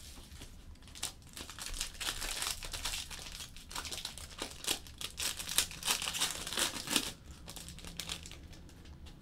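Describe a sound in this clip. A foil card pack crinkles and tears as it is opened.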